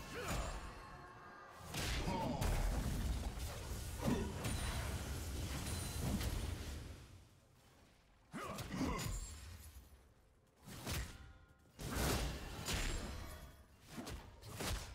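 Spell blasts and hits crash and whoosh in a game battle.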